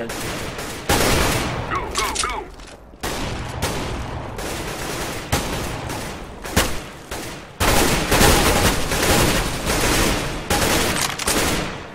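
A gun clicks and rattles as a weapon is switched.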